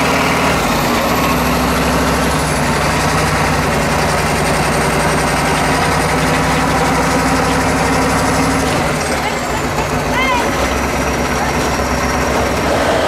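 A truck's diesel engine rumbles loudly and revs as it climbs.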